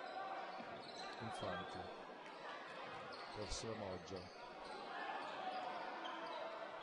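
A ball bounces on a wooden court.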